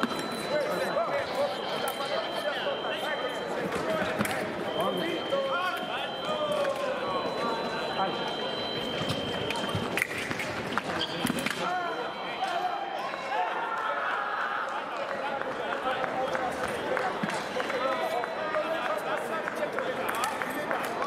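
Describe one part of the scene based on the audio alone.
Many voices murmur and chatter in a large echoing hall.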